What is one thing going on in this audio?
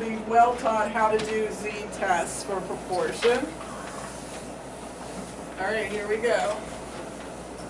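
A woman speaks clearly, as if teaching.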